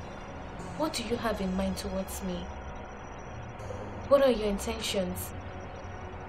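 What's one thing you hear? A young woman speaks softly and pleadingly, close by.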